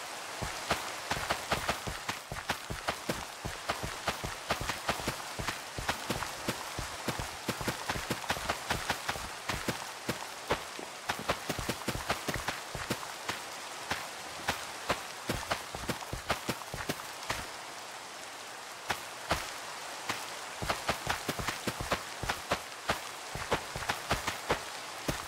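Rain falls steadily with a soft hiss.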